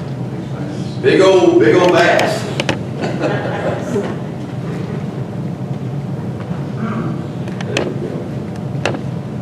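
A middle-aged man speaks through a microphone in an echoing hall.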